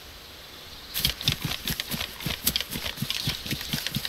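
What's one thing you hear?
Footsteps swish and crunch through tall grass at a steady walking pace.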